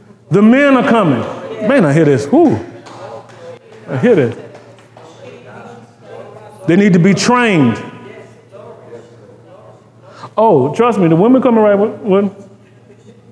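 A man speaks with animation, in short bursts with pauses.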